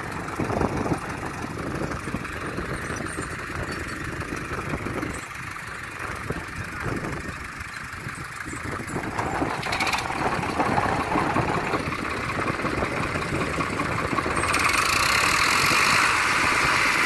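Tractor engines rumble and chug steadily close by.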